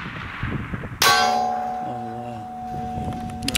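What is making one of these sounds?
A steel target rings out after being hit.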